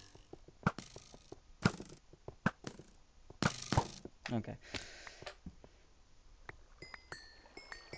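Slimes squelch as they hop about.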